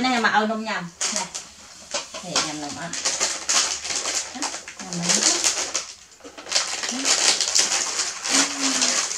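A plastic package crinkles and rustles.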